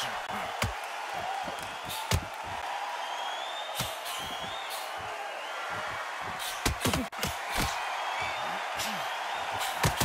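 Punches thud against a boxer's body.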